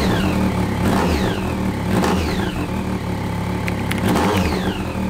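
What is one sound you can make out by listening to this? A motorcycle engine idles loudly with a steady, throbbing rumble.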